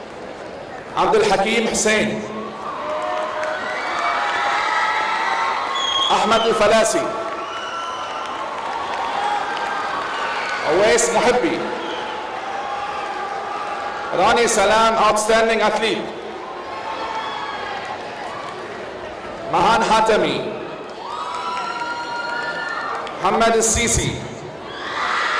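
An audience claps and cheers in short bursts.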